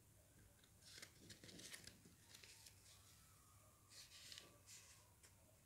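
Paper rustles and crinkles as it is folded by hand.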